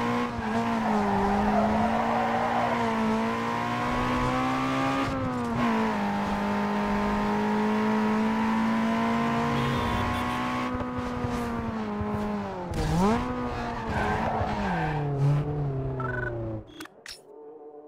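A car engine roars at high revs, rising and falling in pitch.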